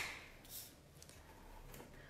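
An arm brushes across a sheet of paper.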